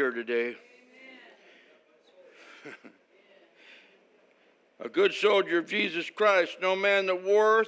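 An elderly man speaks with emphasis through a microphone, pausing between phrases.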